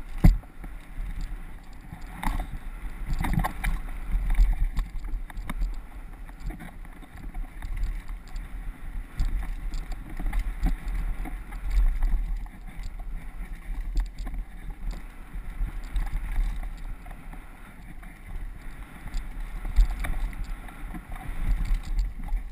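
Bicycle tyres rattle and crunch over a bumpy dirt trail.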